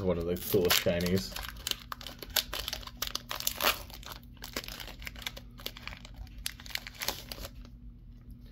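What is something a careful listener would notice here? A foil booster pack crinkles and tears open.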